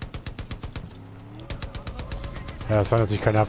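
A machine gun fires in a rapid burst.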